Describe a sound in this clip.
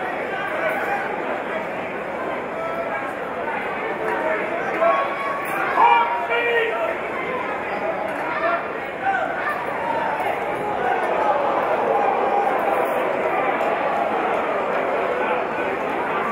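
A man calls out instructions loudly.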